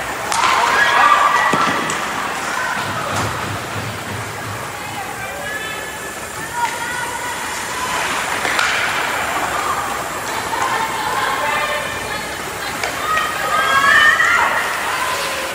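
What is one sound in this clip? Spectators call out and cheer nearby.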